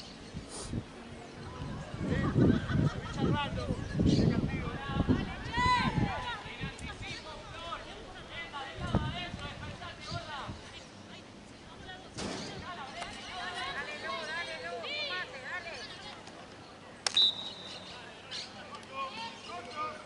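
Players shout and call out across an open outdoor field.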